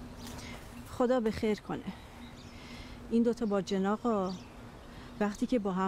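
A middle-aged woman speaks calmly.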